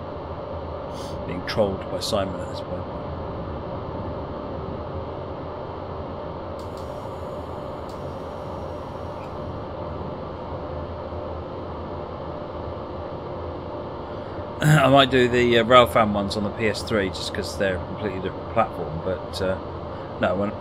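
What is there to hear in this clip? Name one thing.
A middle-aged man talks with animation into a microphone.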